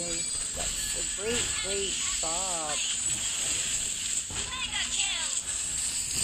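Spell effects whoosh and crackle in a fast video game battle.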